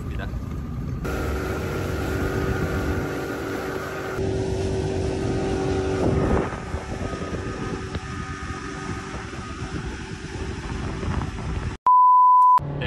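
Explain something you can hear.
An outboard motor drones steadily.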